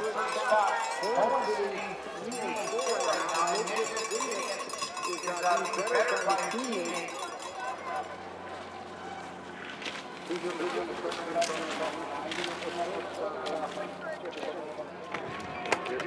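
Skis swish and scrape across snow.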